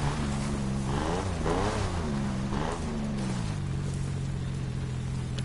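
A car engine revs up and down, then settles into a steady drone.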